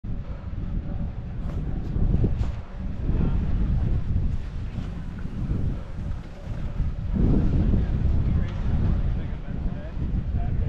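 Wind rushes past, loud and gusty outdoors.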